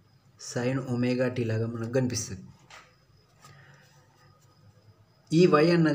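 A pen scratches softly across paper.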